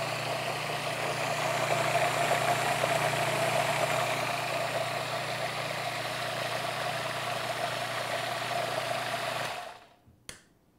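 A food processor whirs steadily, then stops.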